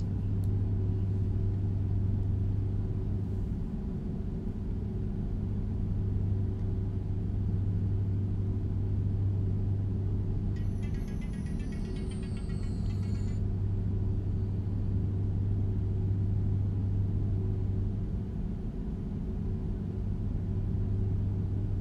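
Tyres roll on the road.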